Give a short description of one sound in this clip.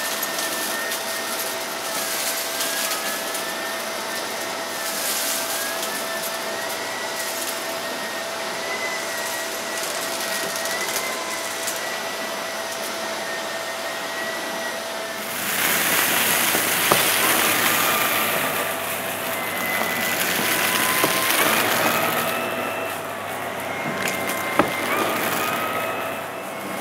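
A vacuum cleaner runs with a steady roar and a wavering whine.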